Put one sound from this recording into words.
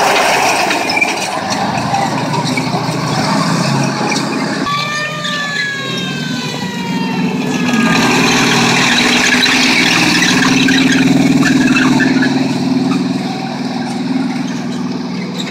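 A tank engine rumbles and roars close by.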